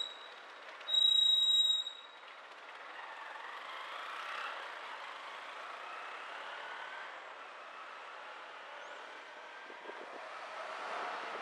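A car drives slowly along a city street, its engine and tyres humming steadily.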